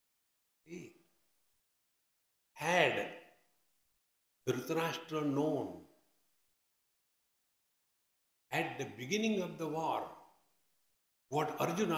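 An elderly man speaks slowly and emphatically into a microphone, pausing between phrases.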